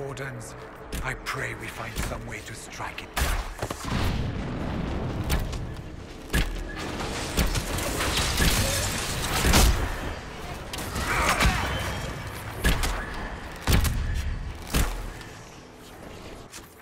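Magic blasts and weapon strikes crash in quick bursts.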